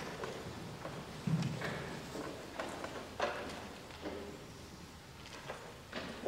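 Small objects knock and clink softly in an echoing room.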